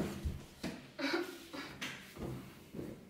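A young woman sighs heavily nearby.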